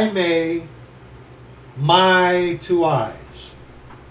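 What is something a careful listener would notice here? A middle-aged man speaks close to a microphone in short, drawn-out phrases.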